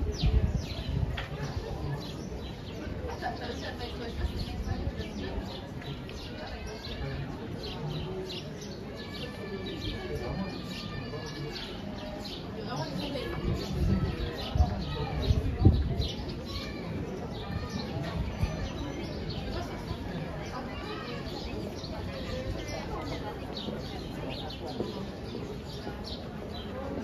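A crowd of people talk and walk outdoors.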